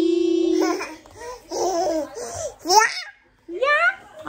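A toddler laughs close by.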